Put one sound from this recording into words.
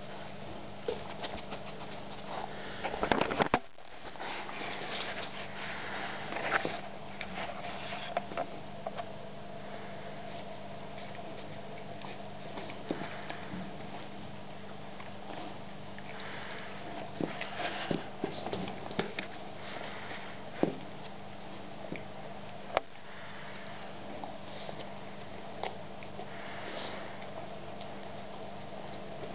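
A dog chews and gnaws on a toy with wet, crunchy bites.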